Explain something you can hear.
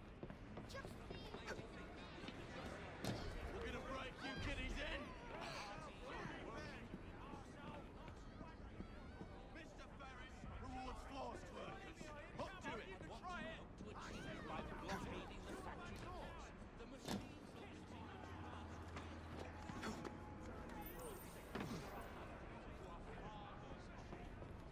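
Footsteps thud quickly across wooden boards.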